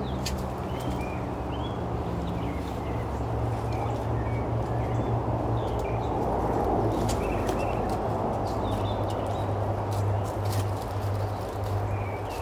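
A wooden hive frame scrapes as someone lifts it out of a hive box.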